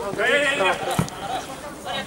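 A ball is kicked hard with a thud.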